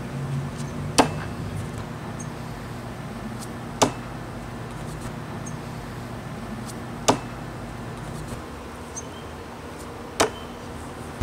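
An axe thuds sharply into a wooden target, several times.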